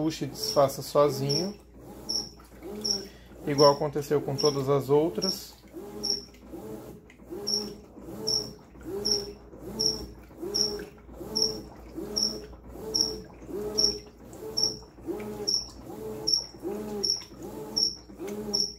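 A washing machine agitator churns back and forth in a steady rhythm.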